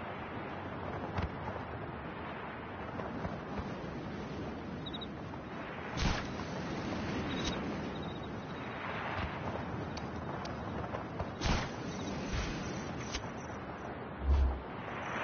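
Wind rushes past in a steady, loud roar.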